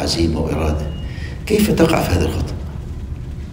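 An elderly man speaks calmly and close to a microphone.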